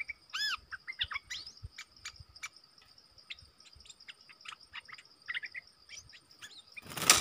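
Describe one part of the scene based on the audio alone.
Birds chirp and call in quick, varied bursts outdoors.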